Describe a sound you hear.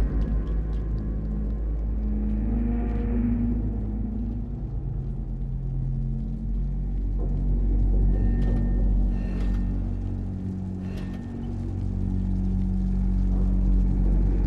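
A metal pipe creaks and clanks as a child climbs it.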